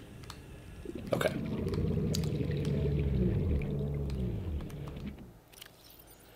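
Bubbles rush and gurgle under water.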